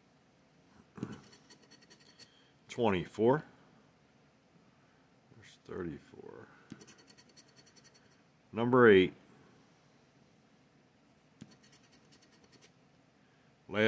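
A plastic scraper scratches rapidly at a card.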